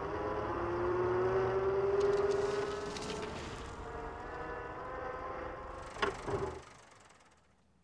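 A car engine rumbles and pulls away.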